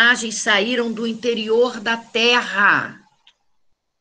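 An elderly woman speaks calmly and clearly, close to a microphone as if on an online call.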